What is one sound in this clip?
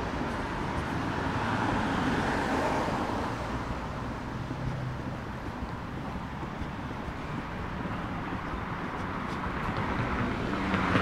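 Traffic hums steadily on a nearby city street, outdoors.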